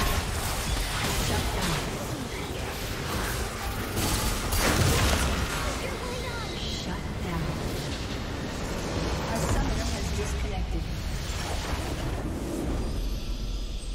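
Game spell effects crackle and blast rapidly during a battle.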